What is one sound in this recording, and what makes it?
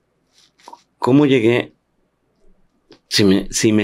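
An elderly man speaks slowly and with feeling into a microphone, close by.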